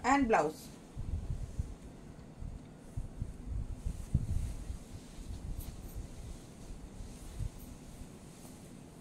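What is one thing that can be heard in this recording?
Silk fabric rustles as it is handled.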